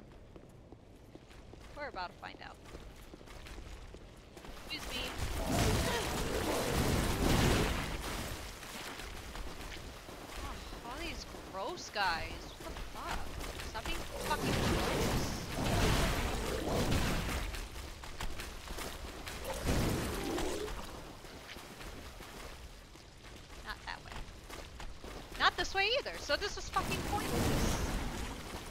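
A young woman speaks into a close microphone with animation.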